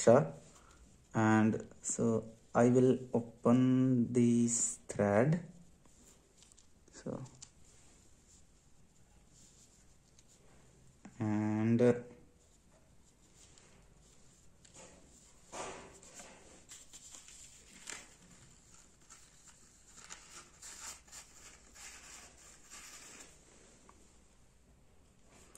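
A cloth bag rustles and crinkles as hands handle it.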